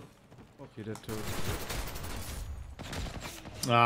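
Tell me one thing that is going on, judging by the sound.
Rapid gunfire rattles in a burst.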